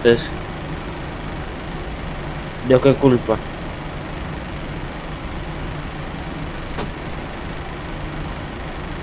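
A jet engine hums steadily at idle.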